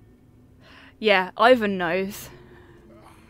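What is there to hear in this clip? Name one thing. A young man exclaims loudly and with animation close to a microphone.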